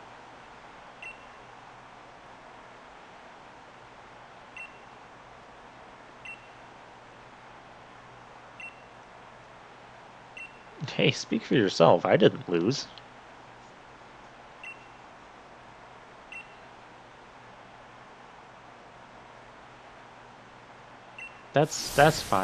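Short soft beeps sound every few seconds.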